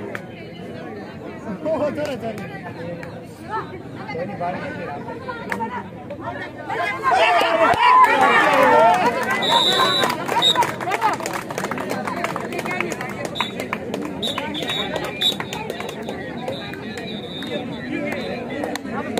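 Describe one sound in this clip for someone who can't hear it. A crowd of young men and women chatters and shouts outdoors.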